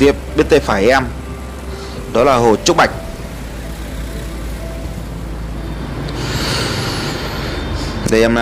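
Motorbike engines hum steadily in passing traffic.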